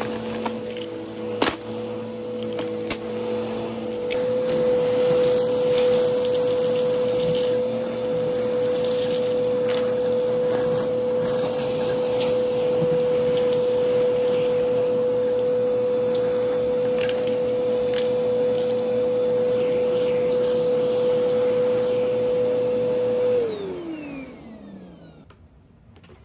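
A vacuum cleaner motor whines steadily, then winds down.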